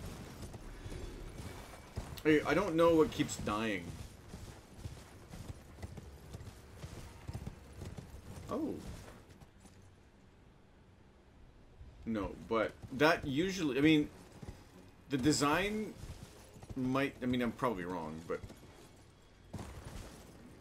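Horse hooves thud on rocky ground.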